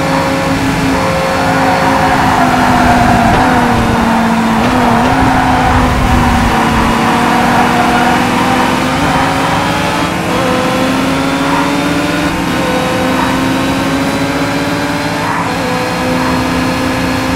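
Other racing car engines drone close by.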